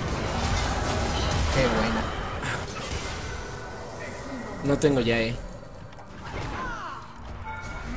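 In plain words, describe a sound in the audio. Game spells whoosh and crackle during a fight.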